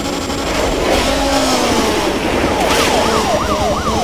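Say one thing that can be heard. A car crashes into another vehicle with a loud bang.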